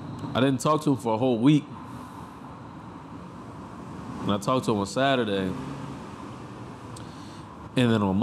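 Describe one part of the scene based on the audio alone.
A young man speaks casually and close to a microphone, in short bursts.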